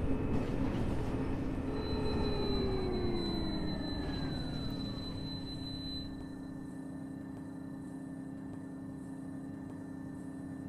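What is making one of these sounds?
A bus motor whines and slowly falls in pitch, then settles into a low steady hum.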